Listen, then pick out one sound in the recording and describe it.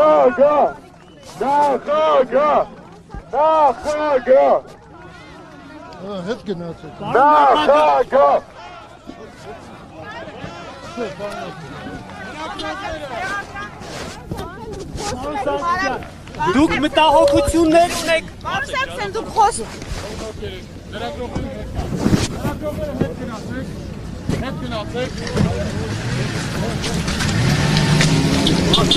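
A crowd of men and women talk over one another.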